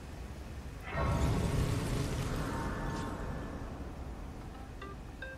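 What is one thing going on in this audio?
A shimmering chime swells and slowly fades.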